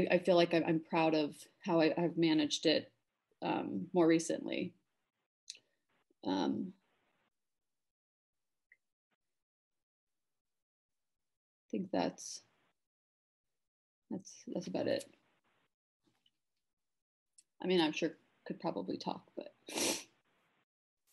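A young woman talks calmly over an online call, pausing between phrases.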